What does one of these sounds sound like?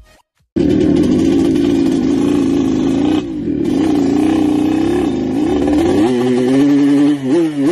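A motorcycle engine runs steadily as the bike rides along.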